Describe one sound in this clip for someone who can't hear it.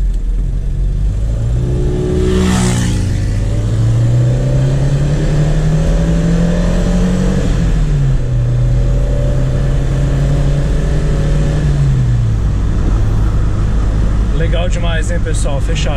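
Tyres rumble steadily over a paved road.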